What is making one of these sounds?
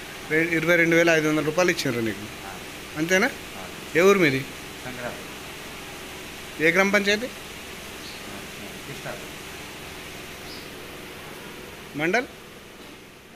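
A man speaks in short bursts close by.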